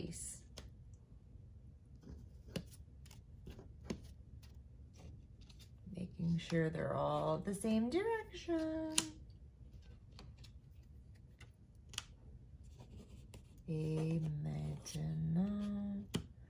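Small paper cards are placed and slid on a sheet of paper with soft taps.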